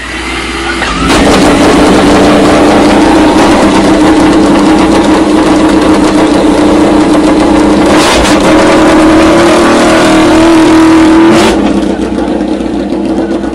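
A racing motorcycle engine roars loudly and steadily.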